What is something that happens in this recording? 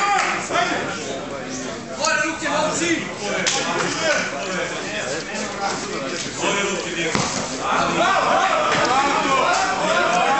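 Several men shout encouragement nearby.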